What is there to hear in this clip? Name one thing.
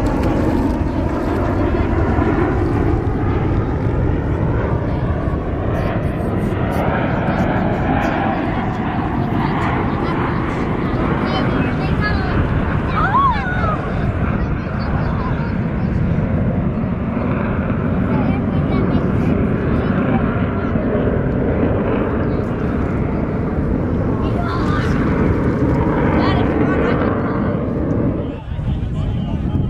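Jet engines roar steadily overhead from a distance.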